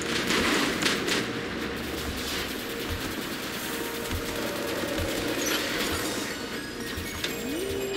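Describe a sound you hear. Large metal robots stomp with heavy thuds.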